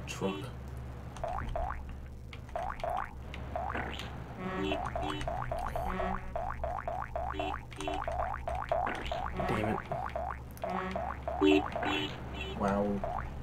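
Short electronic game beeps chime again and again.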